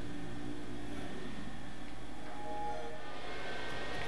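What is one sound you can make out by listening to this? A game console plays a short, soft startup chime.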